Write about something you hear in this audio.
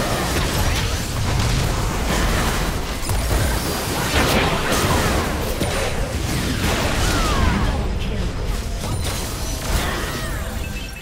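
Magical blasts and clashing hits crackle and boom in a fast, busy battle.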